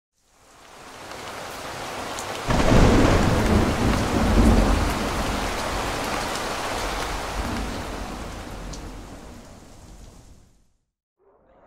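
Water splashes heavily onto a hard surface.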